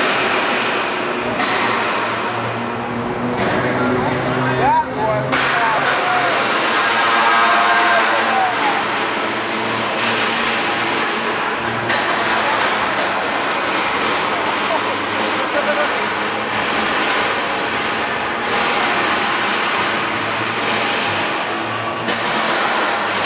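A crowd cheers and roars loudly in a large echoing arena.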